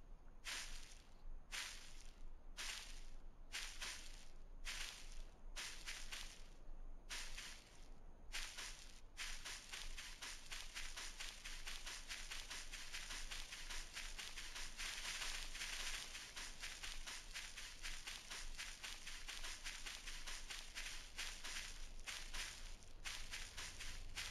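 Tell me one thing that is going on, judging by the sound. Footsteps swish through tall grass, slow at first and then quick and steady.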